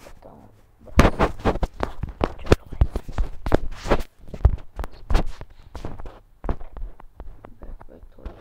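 Footsteps thud quickly as a character runs.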